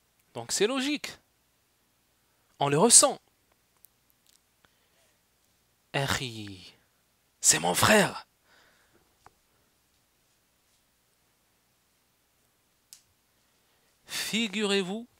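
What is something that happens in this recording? A young man speaks with animation into a close headset microphone, in short bursts with pauses.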